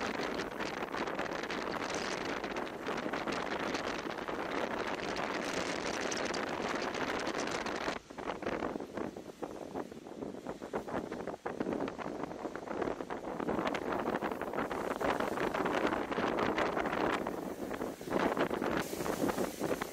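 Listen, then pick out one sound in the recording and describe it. Strong wind roars and buffets outdoors.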